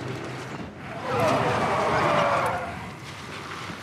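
A man's voice speaks urgently from the game.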